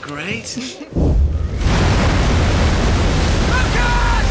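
A huge wave roars with a deep, rising rumble.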